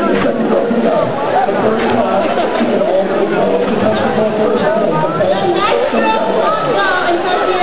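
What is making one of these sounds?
A large crowd cheers and shouts loudly in an echoing gym.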